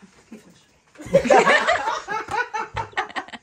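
Women laugh loudly nearby.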